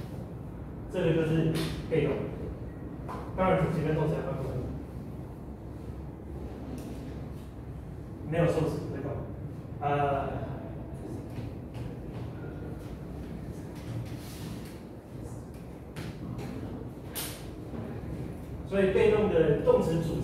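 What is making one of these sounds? A man lectures in a large echoing room, speaking out loud with pauses.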